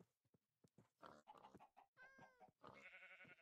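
Pigs grunt and oink.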